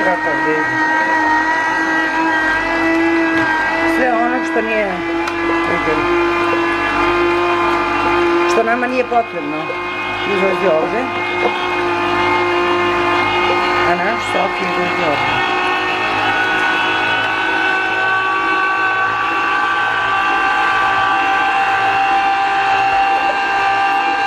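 A juicer motor hums steadily.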